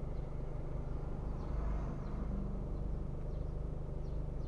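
A car drives slowly past close by.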